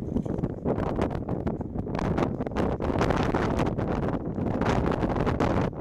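Wind buffets loudly across the microphone outdoors.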